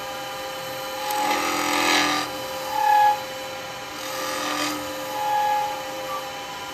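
A chisel scrapes against spinning wood on a lathe.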